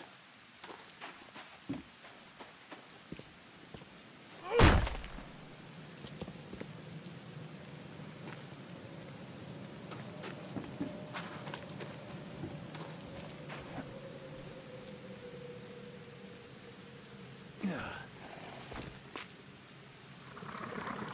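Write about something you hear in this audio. Footsteps crunch slowly over damp ground.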